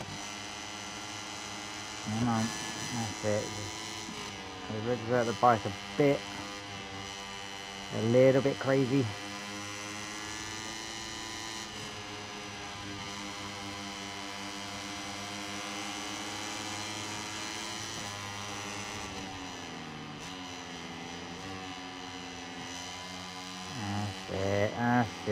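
A racing motorcycle engine screams at high revs.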